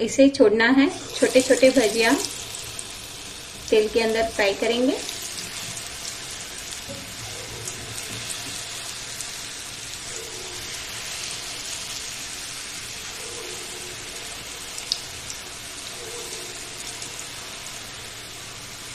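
Batter sizzles and crackles in hot oil.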